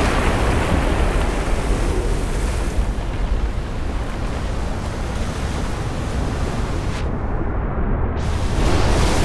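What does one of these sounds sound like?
Water churns and rushes steadily around a small craft's motor.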